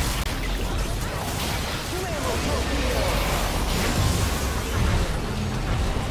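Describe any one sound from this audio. Spell effects blast and crackle in a fast-paced fight.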